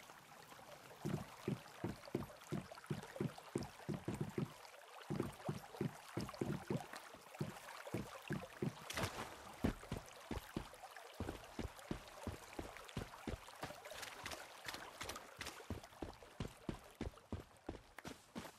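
Footsteps thud quickly on wooden boards and then on gravel.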